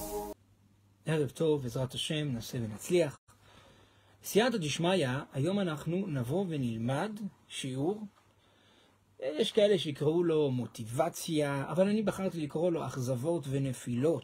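A man speaks calmly and with animation, close to a microphone.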